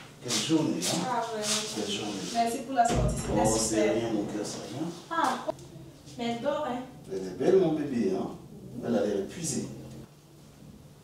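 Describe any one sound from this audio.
A woman speaks with animation nearby.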